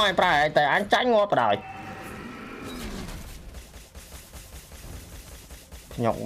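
Video game battle effects whoosh and clash.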